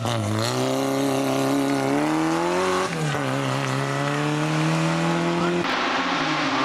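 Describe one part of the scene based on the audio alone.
A racing car engine revs hard, rising in pitch as it shifts up through the gears.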